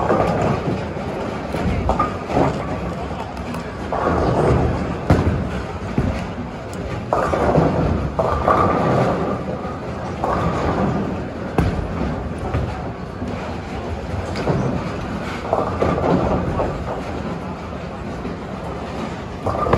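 Bowling balls rumble down wooden lanes in a large echoing hall.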